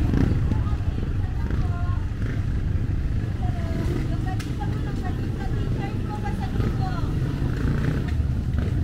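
Women and men chatter nearby outdoors.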